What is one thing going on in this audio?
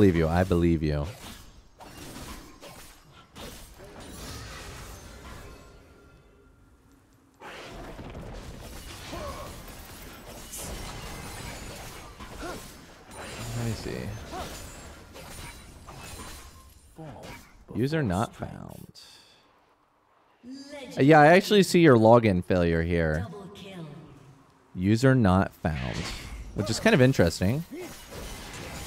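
Video game spells whoosh and clash in quick bursts.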